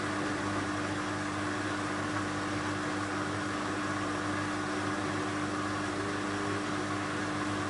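Water sloshes inside a washing machine drum.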